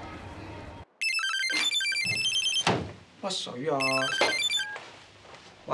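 A mobile phone plays a melodic ringtone.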